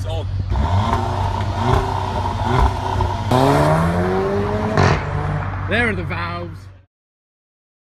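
A sports car engine revs loudly and repeatedly nearby, outdoors.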